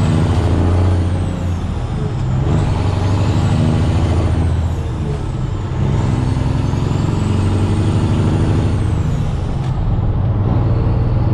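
A truck's engine shifts through gears, dropping in pitch.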